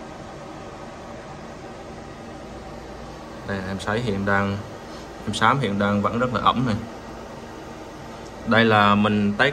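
A fan hums steadily.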